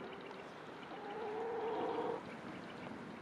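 A hen clucks loudly nearby.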